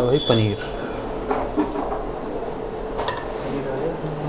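A knife taps and clinks against a metal plate.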